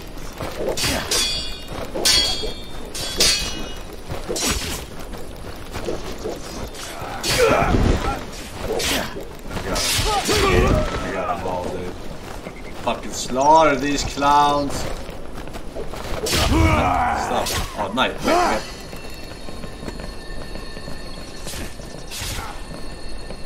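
Swords clash and slash in a video game.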